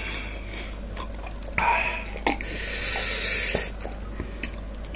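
A young woman gulps water from a glass.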